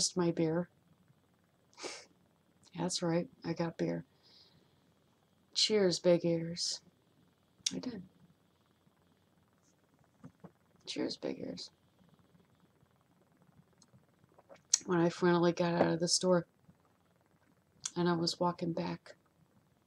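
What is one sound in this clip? A woman talks calmly and close up into a microphone, with short pauses.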